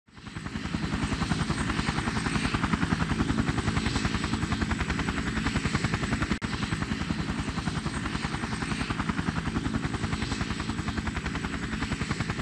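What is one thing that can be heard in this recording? Helicopter rotor blades thump rapidly and steadily overhead.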